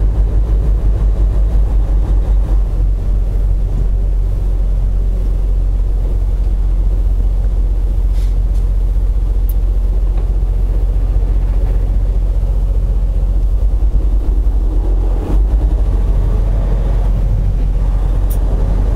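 A truck's diesel engine rumbles steadily from inside the cab.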